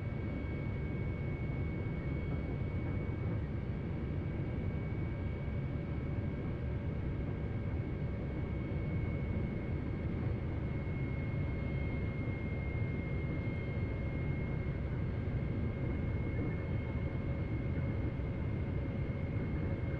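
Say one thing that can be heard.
A high-speed electric train rumbles steadily along the tracks.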